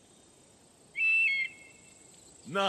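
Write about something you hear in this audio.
An eagle gives a short, sharp screech.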